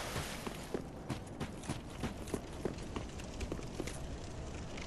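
Armoured footsteps clatter quickly on stone.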